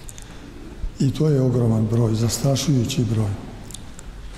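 An elderly man chants loudly into a microphone, his voice echoing in a large hall.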